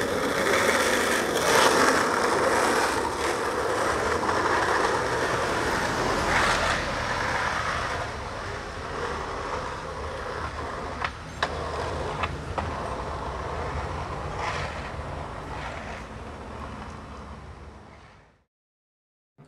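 Skateboard wheels roll and rumble on asphalt.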